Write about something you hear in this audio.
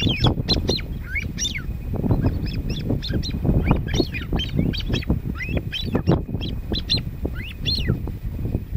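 Birds call with repeated sharp chirps and trills close by.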